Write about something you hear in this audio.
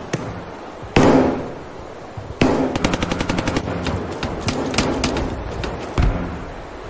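A shotgun fires loudly with a booming echo.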